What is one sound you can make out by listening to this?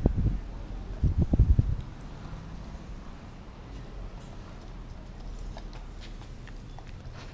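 A dog bites and gnaws on a meaty bone.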